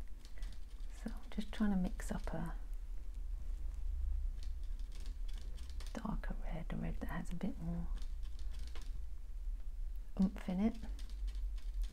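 A woman speaks calmly through a small device speaker, in short phrases with pauses.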